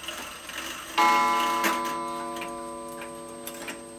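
A clock chime strikes and rings on, slowly fading.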